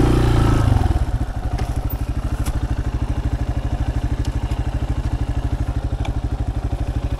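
A motorcycle engine idles with a steady, even putter.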